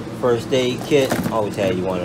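Small items shift and rattle in a drawer.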